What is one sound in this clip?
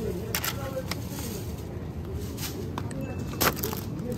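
A plastic food container crinkles in a hand.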